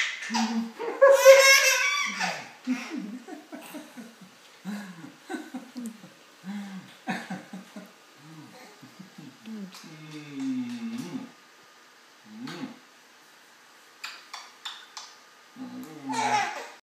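A baby squeals and babbles loudly.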